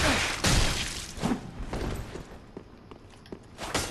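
Armoured footsteps scrape on stone steps.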